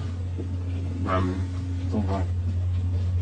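A man speaks briefly in a low voice close by.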